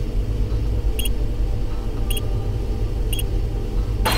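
Keypad buttons beep one at a time as a code is entered.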